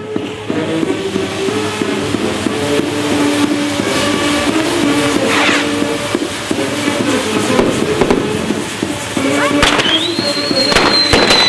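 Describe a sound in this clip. Fireworks crackle and fizz loudly.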